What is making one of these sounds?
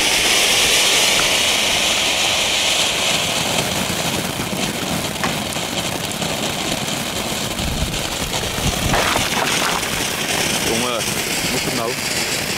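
A firework fountain hisses and crackles loudly outdoors.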